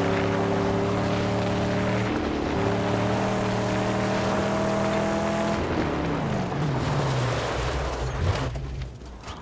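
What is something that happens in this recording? A car engine roars loudly and revs up and down.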